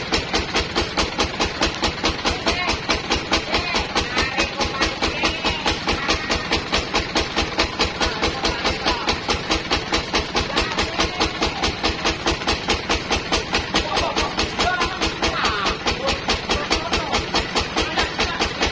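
A band saw cuts through a teak log.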